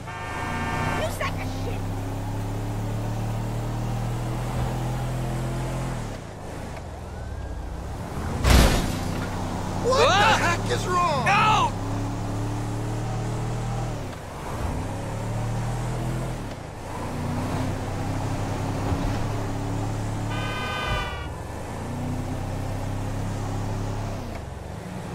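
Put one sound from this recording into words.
A truck engine hums steadily and shifts pitch as it drives along a road.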